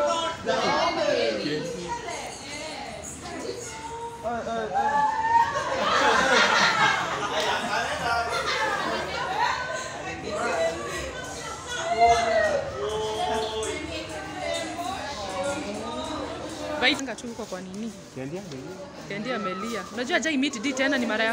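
A crowd of young people chatter and talk loudly in a room.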